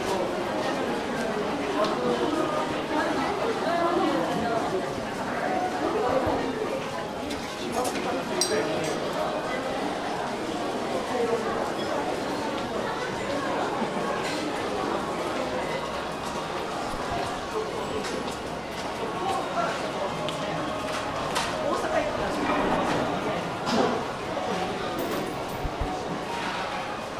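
A crowd murmurs and chatters indoors.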